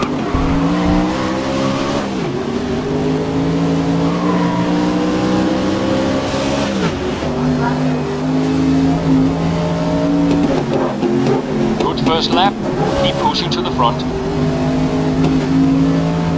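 A racing car engine roars loudly, its pitch climbing and dropping sharply with each gear change.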